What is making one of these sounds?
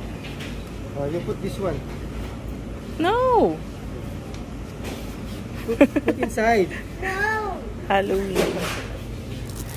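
A young girl speaks excitedly close by.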